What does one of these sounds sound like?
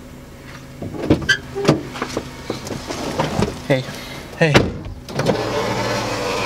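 A young man talks with animation close by inside a car.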